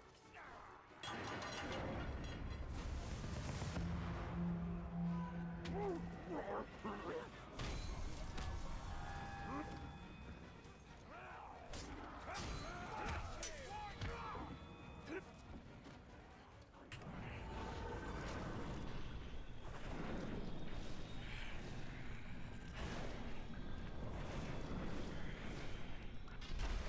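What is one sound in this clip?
Swords clash and thud in a fight.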